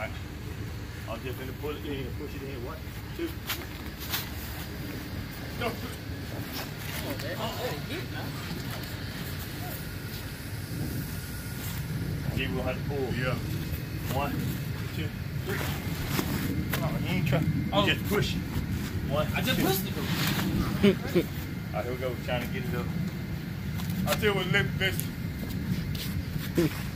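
Men talk to each other nearby.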